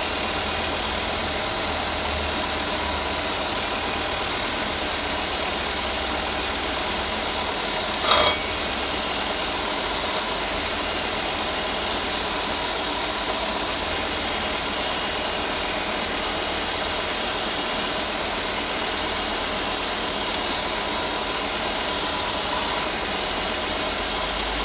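A belt sander whirs steadily.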